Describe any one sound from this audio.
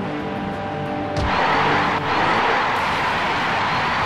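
A ball is kicked hard with a thud.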